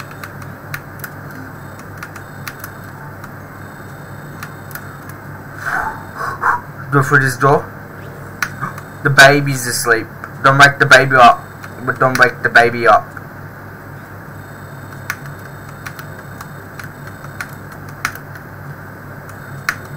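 Keyboard keys click softly and repeatedly.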